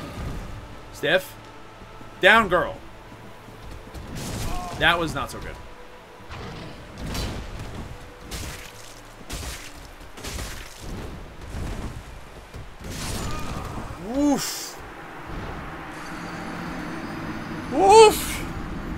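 A large wolf growls and snarls.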